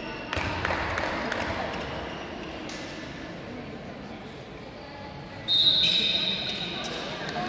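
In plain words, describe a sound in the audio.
Sneakers squeak on a court in a large echoing hall.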